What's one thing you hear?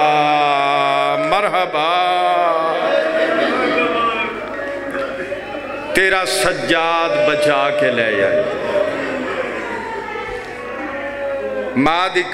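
A man chants a melodic recitation through a microphone and loudspeakers, in a reverberant hall.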